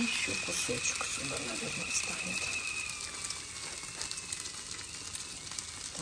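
Bread squelches softly as it is pressed into beaten egg.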